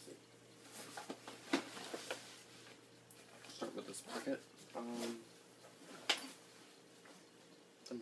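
A zipper rasps on a backpack.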